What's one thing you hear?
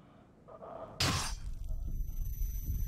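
Metal bars slam down with a loud clang.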